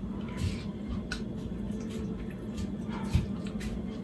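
Chopsticks clink against a bowl.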